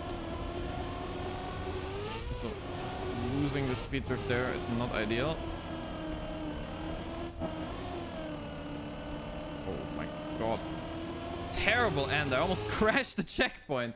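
A racing car engine hums and whines steadily, rising and falling in pitch.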